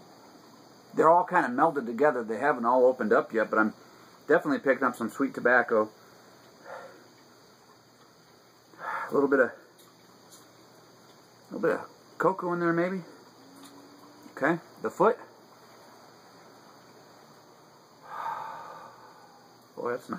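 A middle-aged man talks calmly and close by, in pauses.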